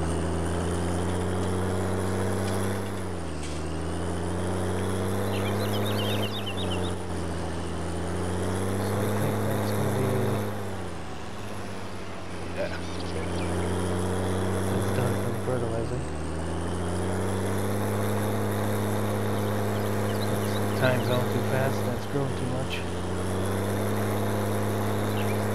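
A trailer rattles and clanks behind a tractor.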